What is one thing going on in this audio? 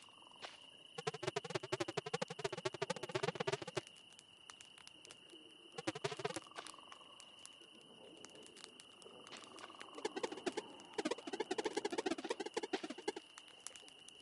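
Quick electronic blips chatter rapidly in bursts.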